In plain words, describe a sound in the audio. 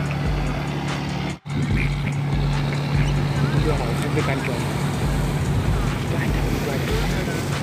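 A boat engine chugs steadily nearby.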